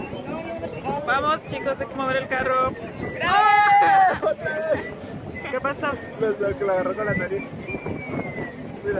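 A man talks and laughs close by.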